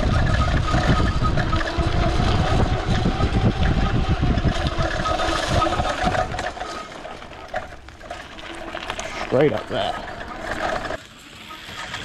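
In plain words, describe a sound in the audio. An electric bike motor whirs steadily.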